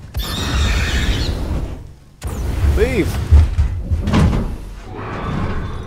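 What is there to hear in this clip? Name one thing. A flamethrower roars in bursts.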